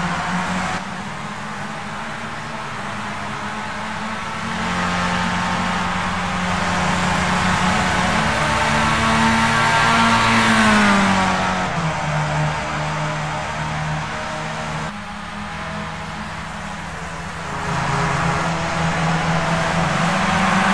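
A racing car engine whines at high speed, its pitch rising and falling.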